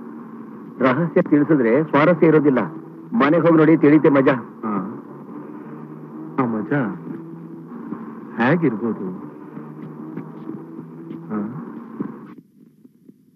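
A man talks and laughs with animation close by.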